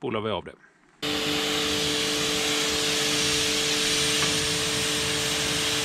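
A pressure washer pump hums steadily.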